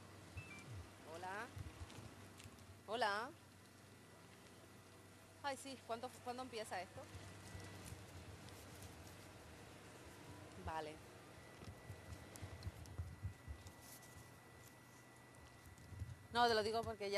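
A young woman speaks into a handheld microphone in short bursts with pauses.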